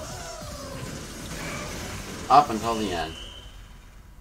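Video game music and effects play, then cut off.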